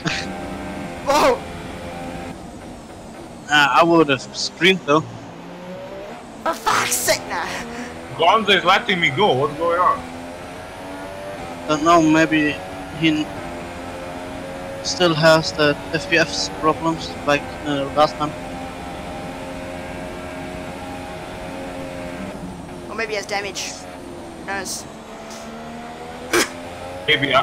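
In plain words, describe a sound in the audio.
A racing car engine whines loudly, its pitch rising and dropping as it shifts gears.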